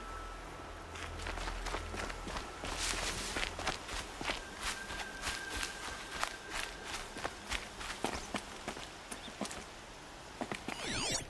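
Footsteps crunch and rustle through dry grass and gravel.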